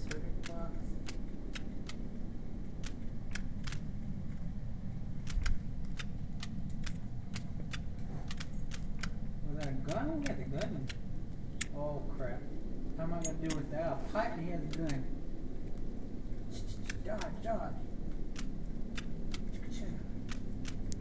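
Footsteps tread steadily on a hard floor.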